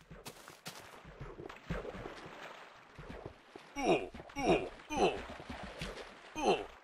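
Water splashes as something wades through it.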